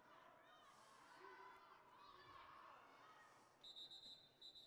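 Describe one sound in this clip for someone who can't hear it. A crowd of people cheer and shout in a large echoing hall.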